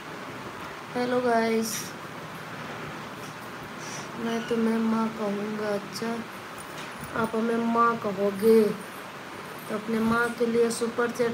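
A woman speaks calmly, close up.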